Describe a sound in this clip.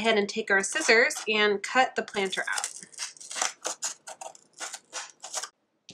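Scissors snip through thick cardboard.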